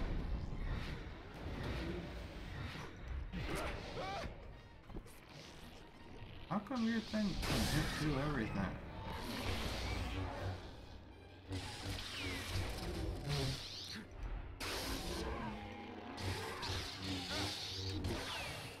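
Lightsaber blades hum and clash in fast fighting.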